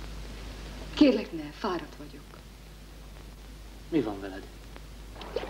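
A woman speaks close by in a tense, raised voice.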